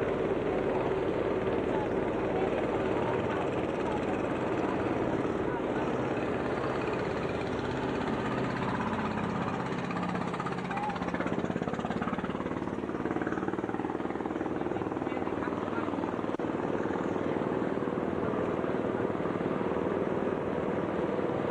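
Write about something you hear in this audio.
A boat engine drones steadily close by.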